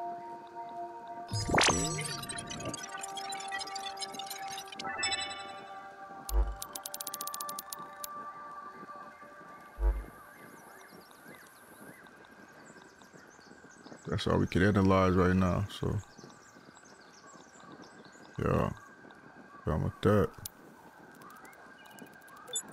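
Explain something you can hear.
Game menu sounds chime and click as items are chosen.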